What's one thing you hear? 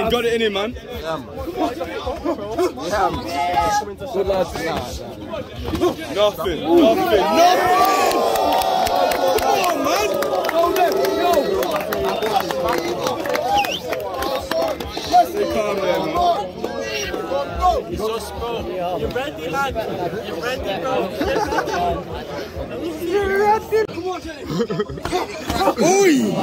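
A crowd of men chatter and call out outdoors.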